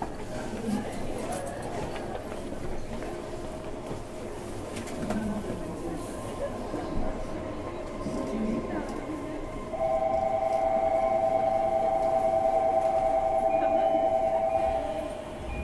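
An electric train hums steadily at a platform.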